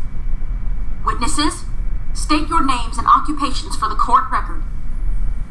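A young woman speaks firmly and formally.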